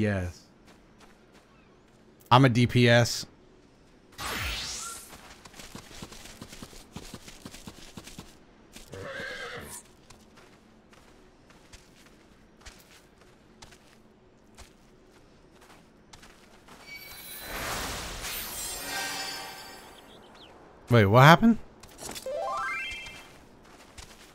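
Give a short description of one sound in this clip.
Magic spells whoosh and chime in short bursts.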